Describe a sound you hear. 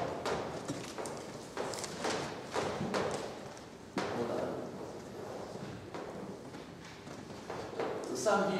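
A woman lectures calmly in a reverberant room.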